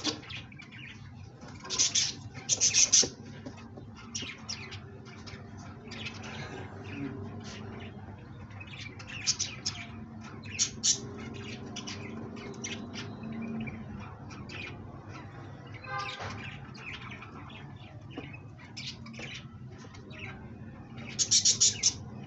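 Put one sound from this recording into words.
Pigeons coo with low, soft rumbling calls close by.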